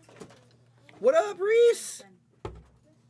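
A young man shouts excitedly.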